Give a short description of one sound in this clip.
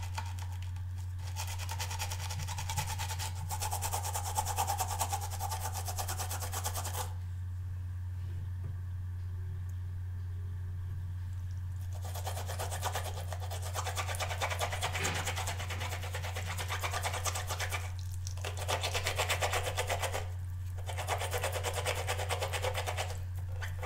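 A brush scrubs rapidly against a rubbery ridged pad.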